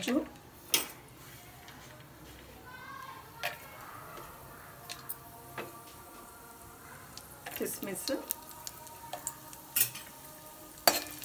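Nuts sizzle and crackle softly in hot oil.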